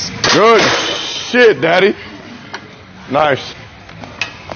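A man grunts loudly with strain.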